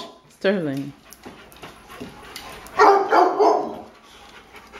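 A dog yelps and whines loudly.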